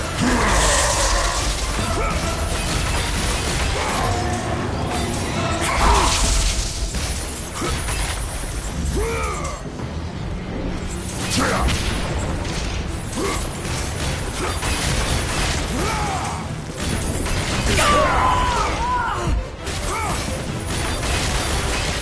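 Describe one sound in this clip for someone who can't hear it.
A giant creature roars and growls.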